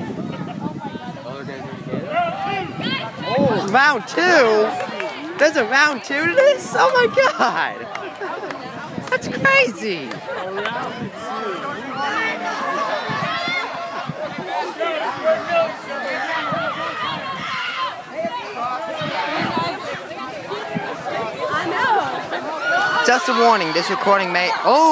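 A large crowd of young people chatters and shouts outdoors.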